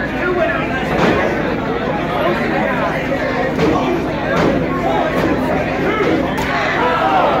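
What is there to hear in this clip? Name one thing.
Bodies thud onto a wrestling ring's canvas.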